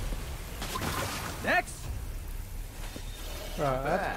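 A magical energy blast whooshes and crackles.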